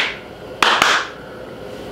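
A man claps his hands twice, sharply and close by.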